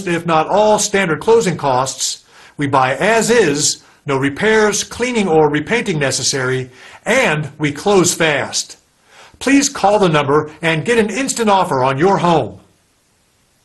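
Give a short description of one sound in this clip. A middle-aged man speaks with animation, close to the microphone.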